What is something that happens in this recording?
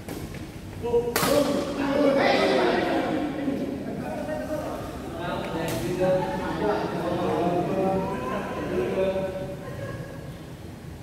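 Men talk and call out to each other in an echoing hall.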